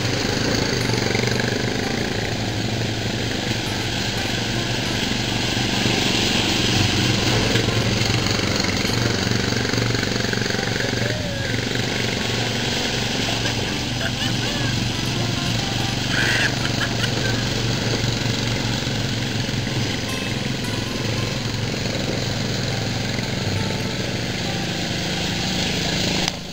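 Quad bike engines rumble steadily close by.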